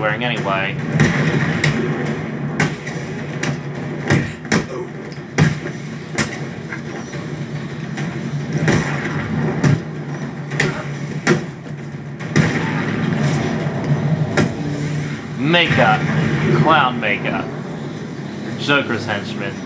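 Sharp blows and impacts thud and crack repeatedly during a fight.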